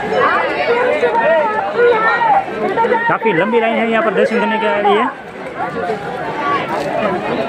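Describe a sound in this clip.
A large crowd of men and women chatters loudly outdoors.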